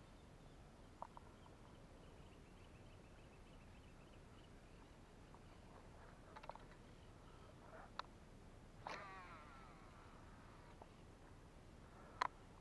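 A fishing reel clicks softly as the line is wound in.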